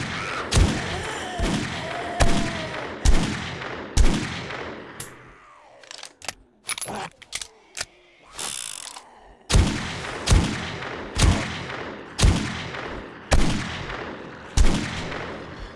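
A rifle fires single shots.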